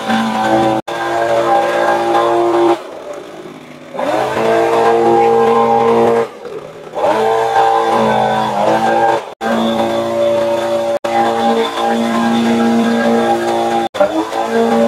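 A small petrol engine drones loudly nearby, revving up and down.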